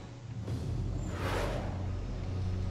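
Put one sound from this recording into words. A large winged creature whooshes past.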